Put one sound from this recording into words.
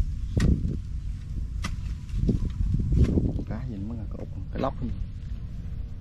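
Clumps of mud squelch as they are pulled loose.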